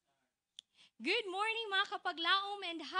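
A young woman speaks cheerfully into a microphone.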